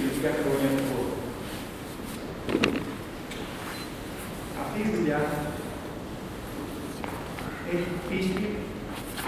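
A middle-aged man speaks calmly to an audience in a room with a slight echo.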